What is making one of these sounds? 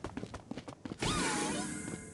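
A magic spell whooshes and crackles.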